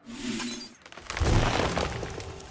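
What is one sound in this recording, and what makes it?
A game's magical whoosh sounds as a card is played.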